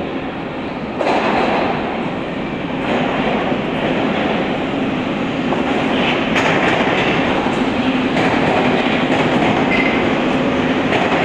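A metro train roars into a station and rushes past close by.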